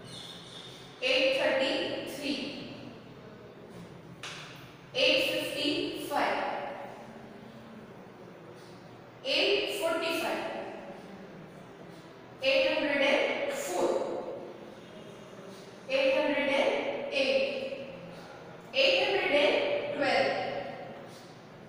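A young woman speaks clearly and steadily in short phrases, close by.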